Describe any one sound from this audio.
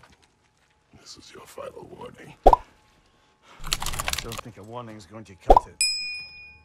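A man with a deep voice speaks coldly.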